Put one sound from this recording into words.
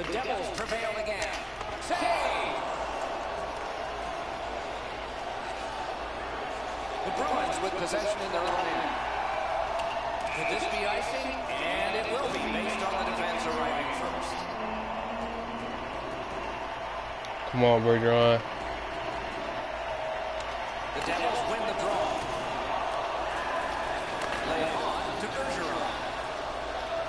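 A crowd murmurs steadily in a large arena.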